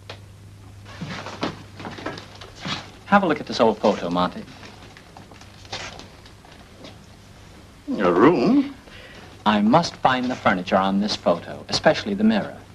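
Two men talk calmly close by, in a slightly muffled old recording.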